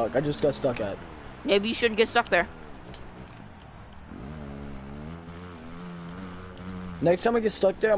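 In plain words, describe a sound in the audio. A motorbike engine whines and revs up and down.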